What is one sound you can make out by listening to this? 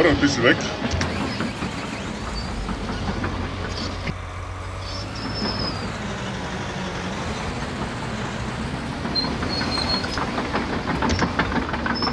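A heavy tracked machine's engine rumbles steadily as it drives.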